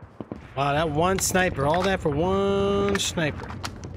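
A rifle magazine clicks into place during a reload.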